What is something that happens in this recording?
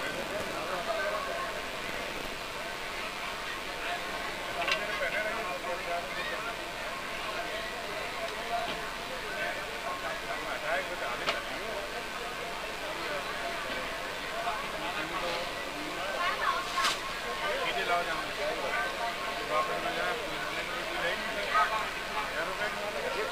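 A woman speaks steadily into a microphone over a loudspeaker.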